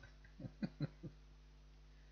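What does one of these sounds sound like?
A young man chuckles briefly.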